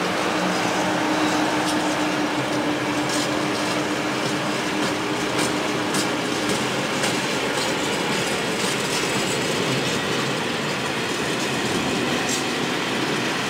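Train wheels clack over rail joints again and again.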